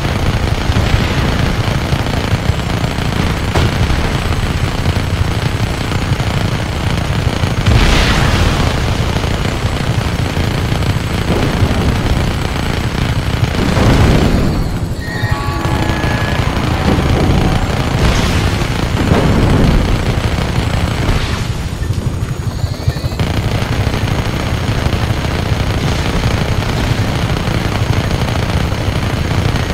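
A helicopter's rotors thump steadily.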